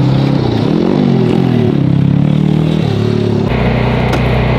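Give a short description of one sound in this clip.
A racing car engine revs loudly nearby.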